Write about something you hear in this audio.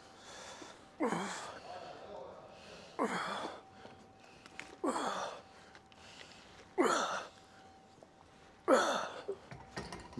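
A man exhales sharply with each repetition of an exercise.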